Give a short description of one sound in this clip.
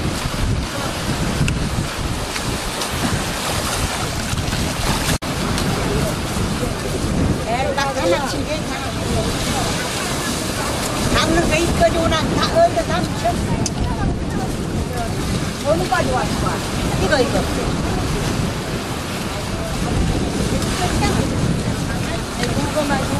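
Waves wash and break against rocks.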